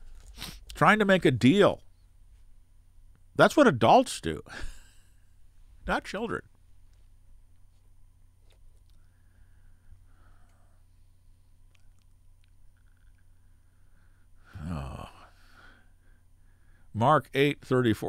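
An elderly man speaks calmly and close to a microphone, with long pauses.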